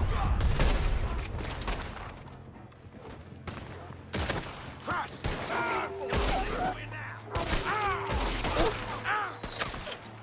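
A rifle fires sharp, loud shots outdoors.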